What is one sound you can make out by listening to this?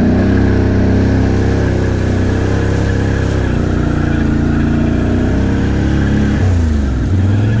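A quad bike engine rumbles steadily up close, its pitch rising and falling.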